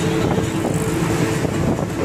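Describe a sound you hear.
An auto rickshaw engine rattles close by.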